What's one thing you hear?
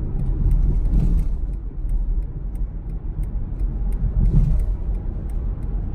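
Rain ticks lightly on a car windscreen.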